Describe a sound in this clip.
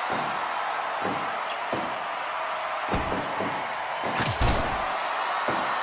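Blows land with heavy thuds.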